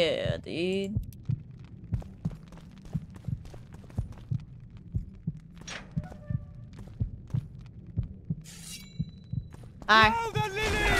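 Footsteps thud steadily on stone.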